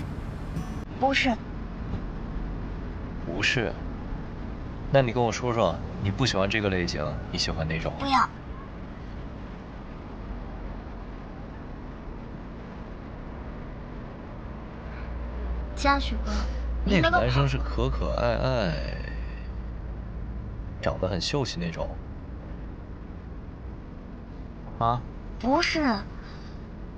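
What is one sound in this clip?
A young woman speaks in short, animated bursts close by.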